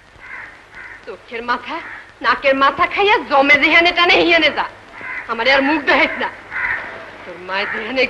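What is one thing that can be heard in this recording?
A young girl speaks loudly and with emotion, close by.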